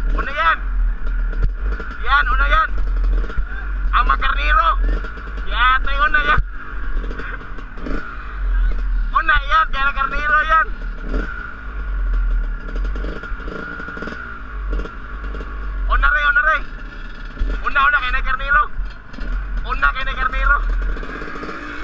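A motorbike engine revs up and down in repeated bursts.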